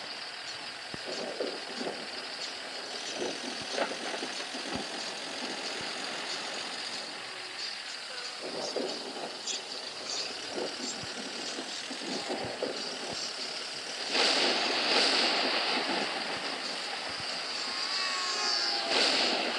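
A bus engine hums steadily as it drives.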